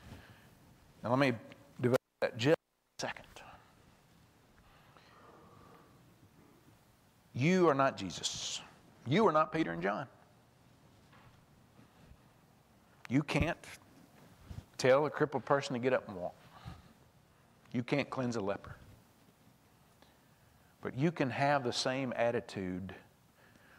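A man speaks with animation into a microphone, in bursts with pauses, in a large echoing hall.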